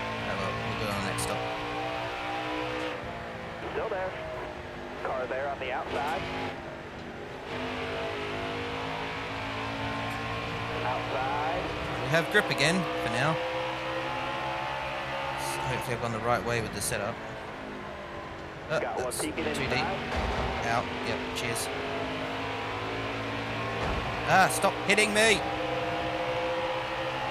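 Race car engines roar steadily.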